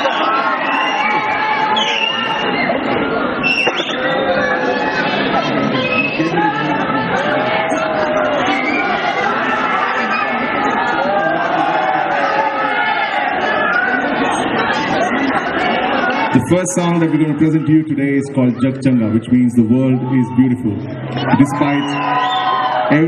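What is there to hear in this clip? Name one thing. A live band plays loudly through speakers outdoors.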